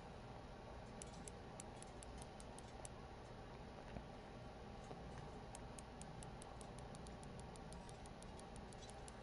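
A fishing reel ticks rapidly as line is reeled in.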